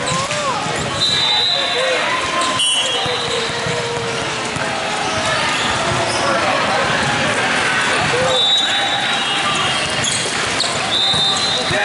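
Shoes squeak sharply on a hard court.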